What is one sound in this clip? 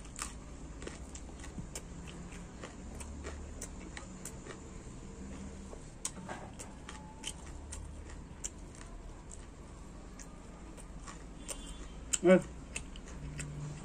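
Rice and food squelch and click softly as fingers mix them on a plate.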